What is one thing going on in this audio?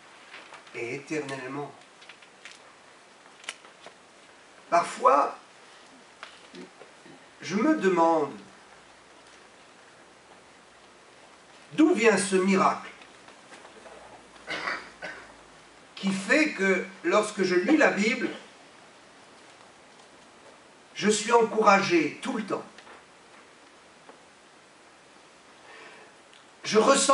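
A middle-aged man speaks calmly into a microphone in short bursts with long pauses.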